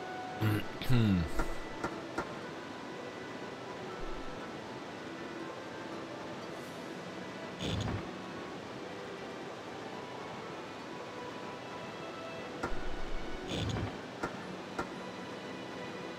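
Metal panels click and clunk into place.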